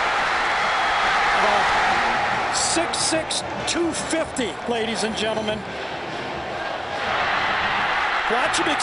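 A large crowd roars loudly in a stadium.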